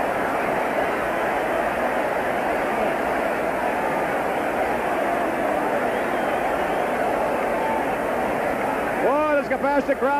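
A large crowd murmurs and cheers in a big hall.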